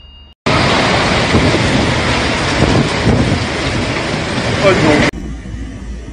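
Strong wind roars and rain lashes down.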